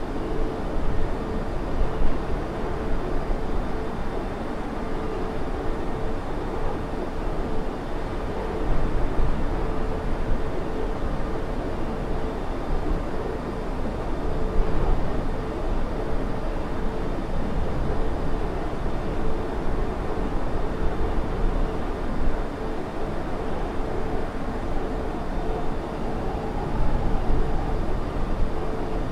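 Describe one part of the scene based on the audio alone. Jet engines roar steadily as an airliner cruises.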